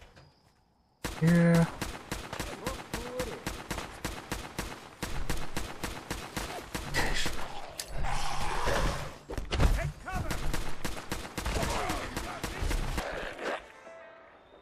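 A heavy gun fires rapid bursts of shots.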